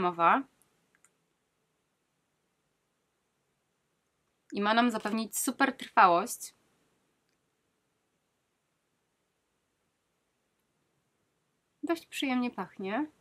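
A young woman speaks calmly and close to a microphone, in short bursts.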